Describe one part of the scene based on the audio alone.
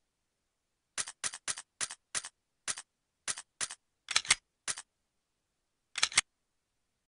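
Short menu clicks tick quickly as a selection moves through a list.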